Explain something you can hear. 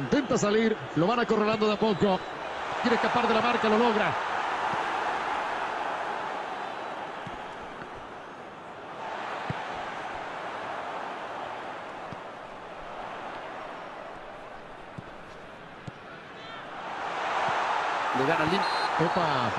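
A large crowd roars and murmurs in a stadium, swelling and fading.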